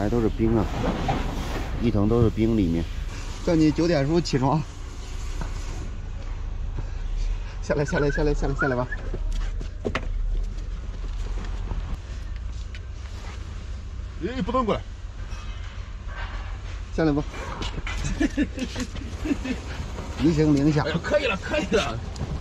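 A man talks nearby in a coaxing, lively voice.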